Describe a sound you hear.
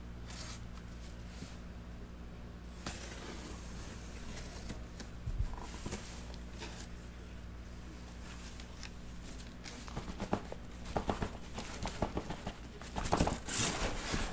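A cardboard box scrapes and rustles as it is handled close by.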